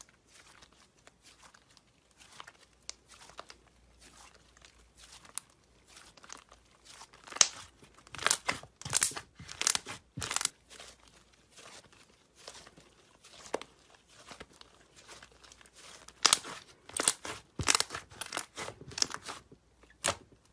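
Thick slime crackles and pops as it is squeezed and stretched.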